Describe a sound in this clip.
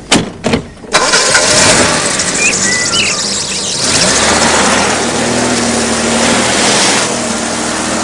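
A car engine starts and runs.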